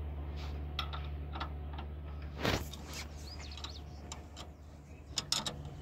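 A wrench clicks and scrapes against metal engine parts.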